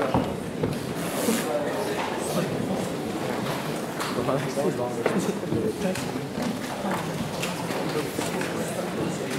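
A piano plays in a large echoing hall.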